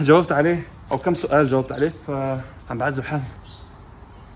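A young man talks close up with animation.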